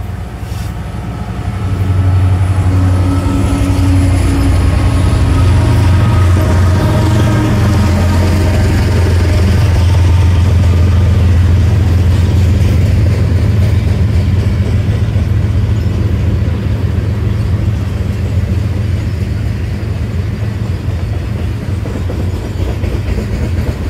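Freight cars clatter and rattle over the rails.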